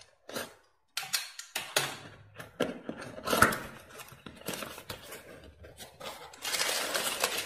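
A cardboard box flap is torn and pulled open.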